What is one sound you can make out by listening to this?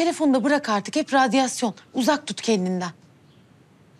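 A woman speaks tensely and quickly, close by.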